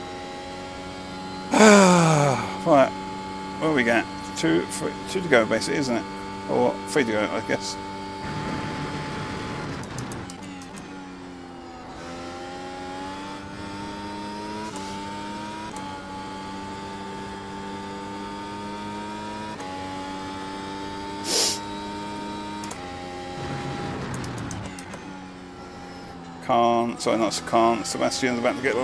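A racing car engine roars steadily and revs up and down through gear changes.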